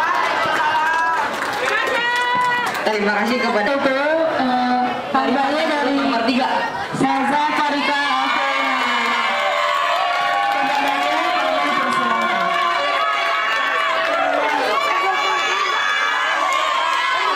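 A large crowd of young people sings along and cheers.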